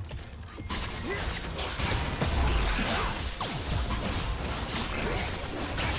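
Heavy impacts thud.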